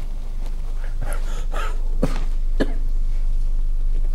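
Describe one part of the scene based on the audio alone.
A young man coughs.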